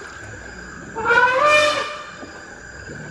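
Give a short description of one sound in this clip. An elephant trumpets loudly.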